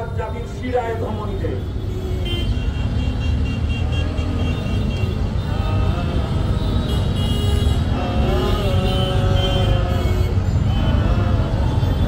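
A man chants into a microphone, heard loudly through loudspeakers outdoors.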